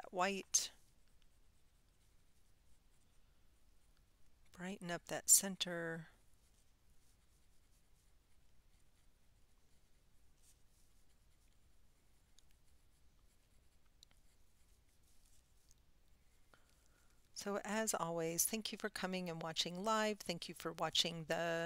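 A woman talks calmly into a close microphone.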